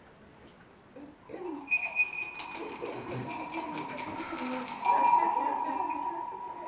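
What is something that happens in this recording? A woman sings into a microphone.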